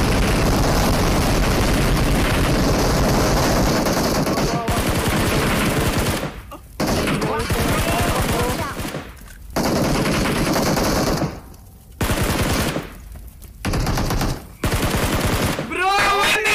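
Rapid gunfire crackles and booms.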